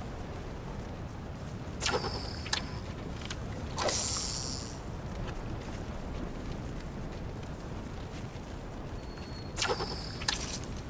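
Waves wash steadily onto a shore.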